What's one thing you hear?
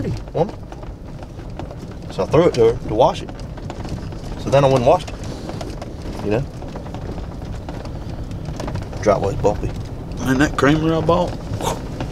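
A man speaks in short bursts, close by.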